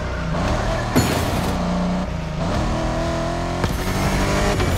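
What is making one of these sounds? A car's engine pops and crackles as it shifts gears.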